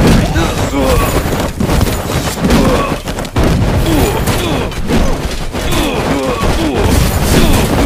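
Explosions burst and crackle.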